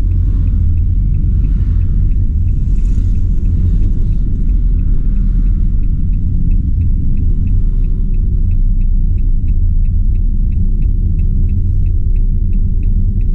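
A vehicle engine rumbles steadily from inside the cab as it drives slowly.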